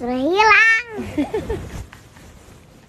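A young child giggles softly.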